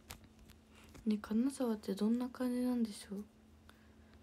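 A young girl speaks briefly and softly close by.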